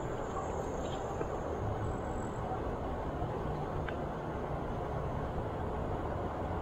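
Wind rumbles steadily outdoors.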